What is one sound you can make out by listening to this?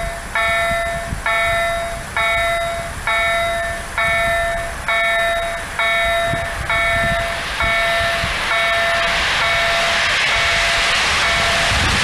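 A level crossing bell rings in a steady, repeating rhythm.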